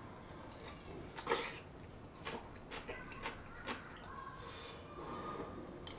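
A young man slurps and chews food.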